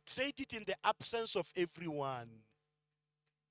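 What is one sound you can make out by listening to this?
A man speaks with feeling into a microphone, drawing out his last word.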